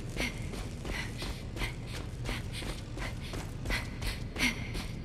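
Footsteps crunch on rock at an even pace.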